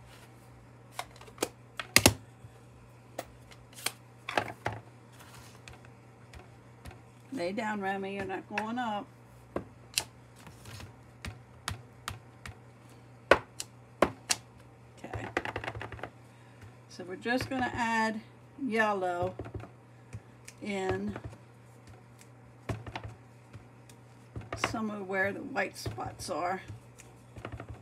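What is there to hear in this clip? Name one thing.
A plastic stamp block taps and clicks on a hard surface.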